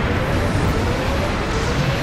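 Water splashes and sprays as a robot skims across it.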